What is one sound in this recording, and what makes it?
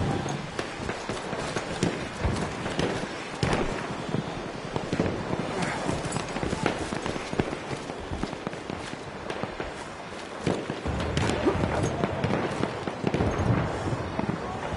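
Gunshots crack repeatedly in the distance.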